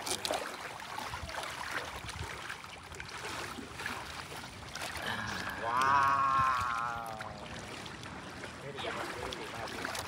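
Shallow water splashes around wading feet.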